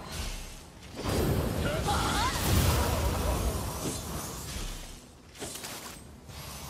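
Swords strike and slash in a close fight.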